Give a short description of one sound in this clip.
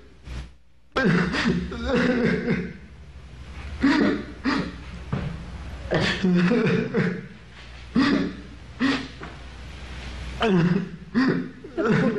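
A young man speaks with feeling.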